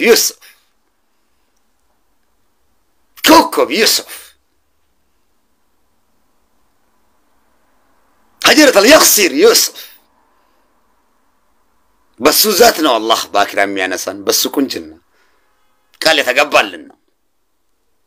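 A man talks close to a phone microphone in short bursts with pauses.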